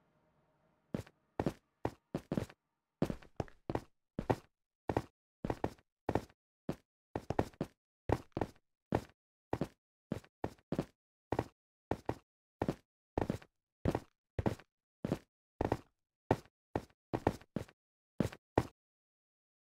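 Footsteps tap steadily on hard stone.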